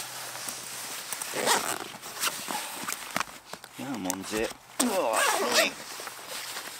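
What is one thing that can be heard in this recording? A zip on a bag opens with a rasp.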